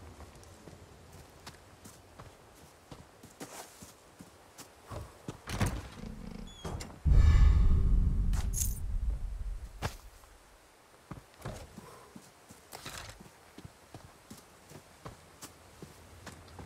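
Footsteps tread slowly over gravel and dirt.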